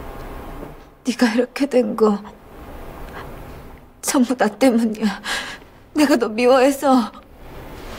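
A young woman speaks tearfully in a shaky, trembling voice, close by.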